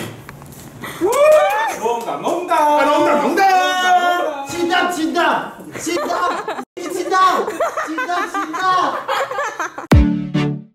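A young man shouts and cheers with excitement nearby.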